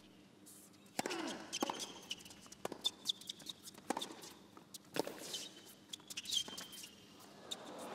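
A tennis ball is struck back and forth with sharp pops of rackets.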